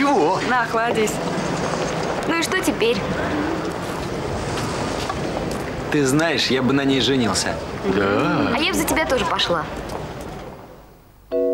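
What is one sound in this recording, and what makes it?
Young men and women talk and chatter close by, outdoors amid a crowd.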